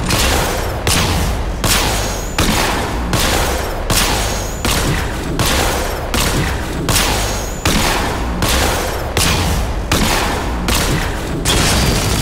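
A vehicle's cannon fires with a loud blast.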